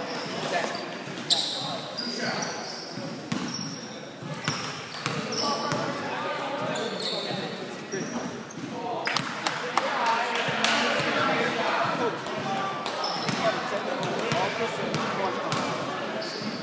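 Voices of a small crowd chatter in a large echoing gym.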